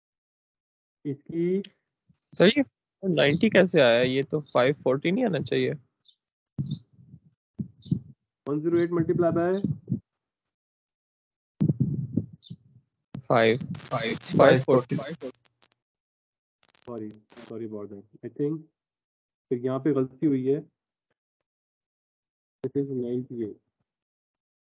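A man lectures calmly through an online call microphone, in bursts with pauses.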